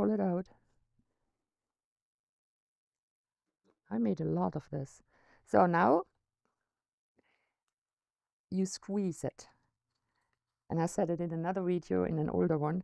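A middle-aged woman talks calmly into a nearby microphone, in short phrases with pauses.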